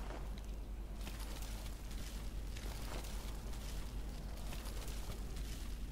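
A bag rustles as it is searched.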